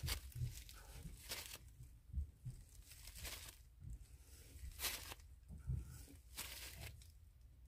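A paper towel rustles and crinkles in bursts.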